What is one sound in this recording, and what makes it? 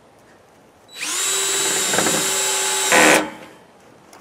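A cordless drill whirs loudly.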